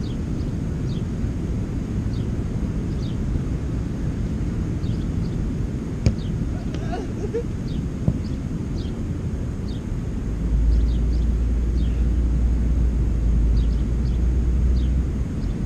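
Wind blusters outdoors, growing stronger.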